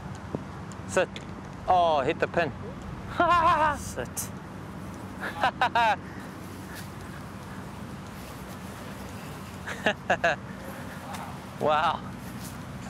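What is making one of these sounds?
A man laughs nearby.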